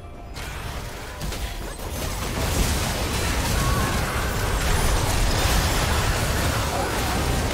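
Video game spell effects crackle and boom in a busy battle.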